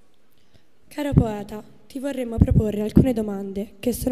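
A young woman speaks into a microphone, heard through loudspeakers.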